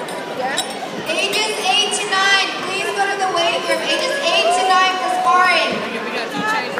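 Children and adults shout and cheer nearby.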